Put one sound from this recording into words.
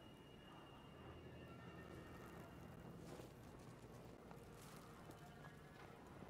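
Footsteps crunch slowly on snow.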